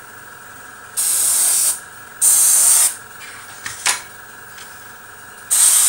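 An airbrush hisses in short bursts of spray.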